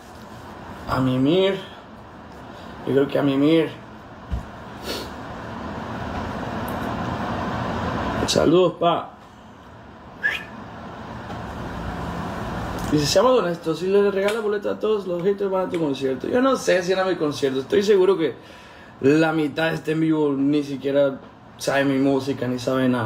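A young man talks calmly and closely into a phone microphone.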